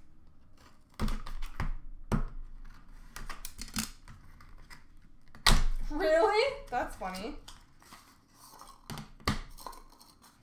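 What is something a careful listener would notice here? Card packs knock and drop into a plastic basket.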